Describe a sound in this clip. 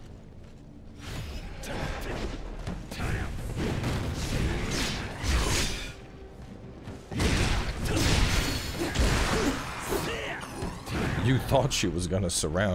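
Blades clash and slash in a fierce fight.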